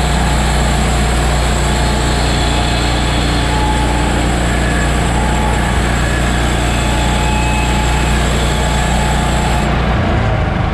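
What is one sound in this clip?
A bandsaw blade cuts through a log.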